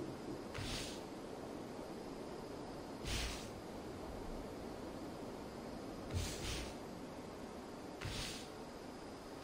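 Soft whooshes sound every few seconds.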